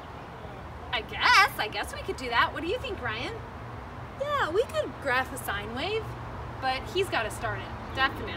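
Another woman speaks and reacts, close by.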